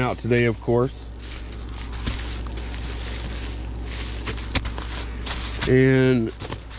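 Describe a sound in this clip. Plastic wrapping rustles and crinkles as it is handled.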